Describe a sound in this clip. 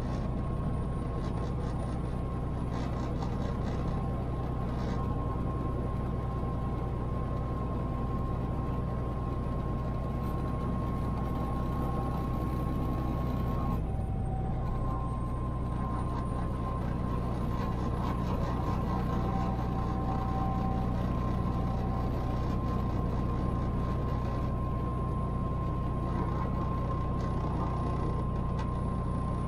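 Tyres roll on the road with a steady rumble inside the car.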